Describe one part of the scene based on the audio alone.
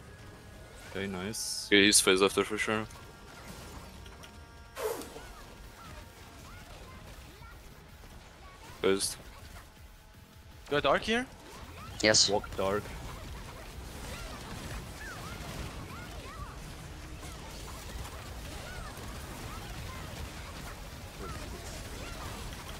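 Magic spells blast and crackle in bursts.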